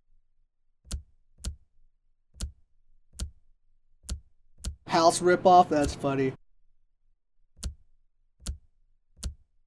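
Short clicks sound as menu tabs switch.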